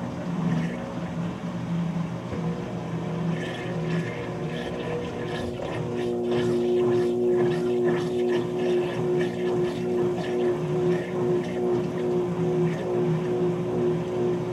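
A washing machine motor hums steadily as the drum spins.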